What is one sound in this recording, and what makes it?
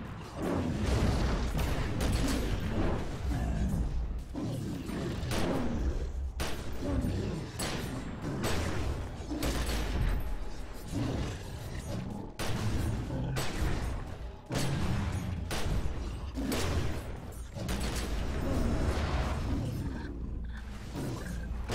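Magic blasts crackle and boom.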